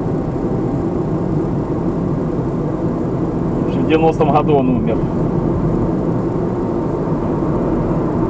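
Tyres roll on asphalt with a low steady rumble.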